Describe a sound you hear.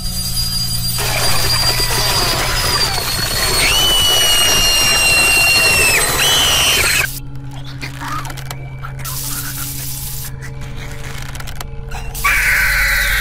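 A shrill, high voice screams loudly.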